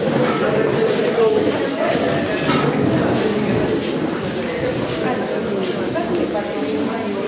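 Elderly women chatter at once in a room with some echo.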